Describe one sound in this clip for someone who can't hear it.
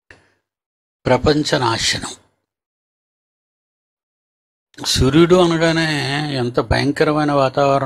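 An elderly man speaks calmly and slowly into a close microphone.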